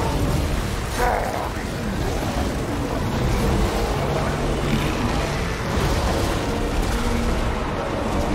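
A large battle roars with clashing weapons.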